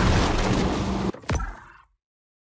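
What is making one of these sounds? Water splashes loudly as a shark breaks the surface.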